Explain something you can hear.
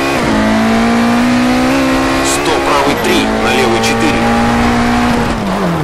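A rally car engine roars at high revs.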